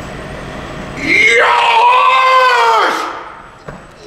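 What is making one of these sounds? A middle-aged man lets out a long, drawn-out wavering cry.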